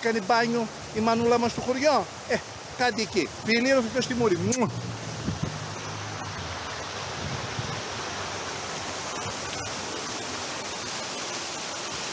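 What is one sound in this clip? Fountain water splashes and rushes steadily.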